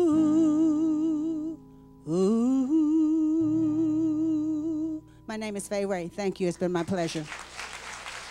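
A woman sings with vibrato into a microphone, close and clear.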